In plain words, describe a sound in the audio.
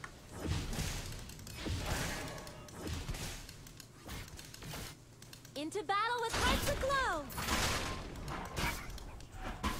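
Game sound effects clash and whoosh.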